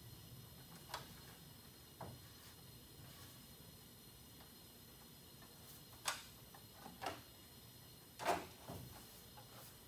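Metal tools clink and knock against an engine.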